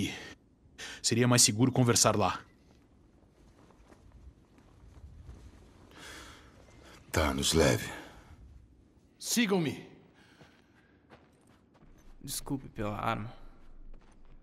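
A man speaks calmly nearby, in short bursts.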